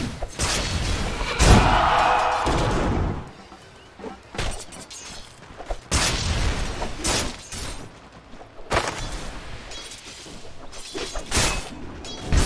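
Game effects crash and whoosh as characters fight with spells and blows.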